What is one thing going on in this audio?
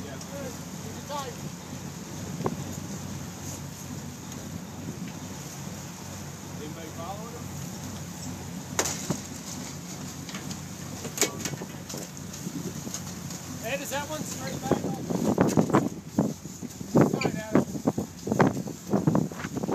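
Water churns and splashes behind a boat.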